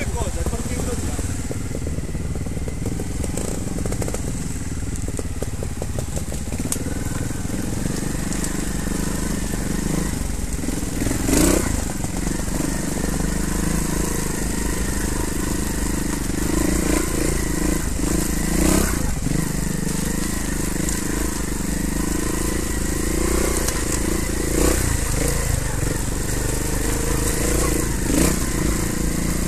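A motorcycle engine hums and revs steadily up close.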